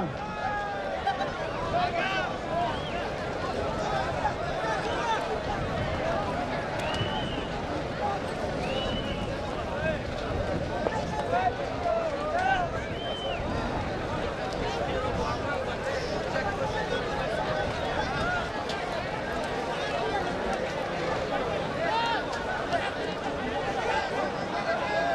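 Hooves thud on dirt as horses jostle in a tight pack.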